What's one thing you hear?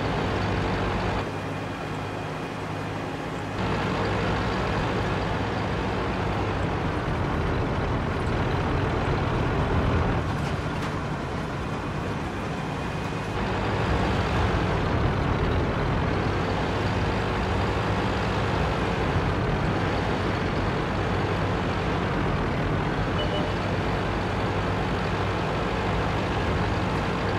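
A heavy tank engine rumbles and clanks steadily.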